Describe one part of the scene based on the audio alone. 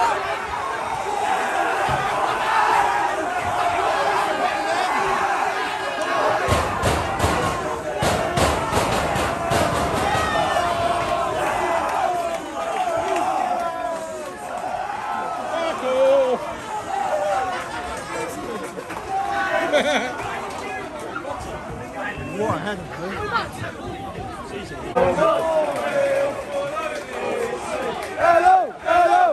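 A crowd of men cheers and sings loudly close by, outdoors.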